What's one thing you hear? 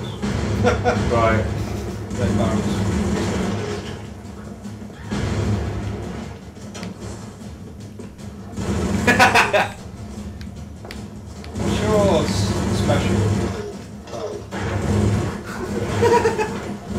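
Gunfire rattles in rapid bursts in a video game.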